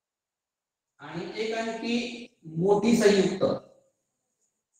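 A man speaks clearly nearby.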